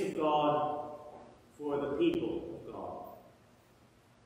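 An elderly man chants through a microphone in a large echoing hall.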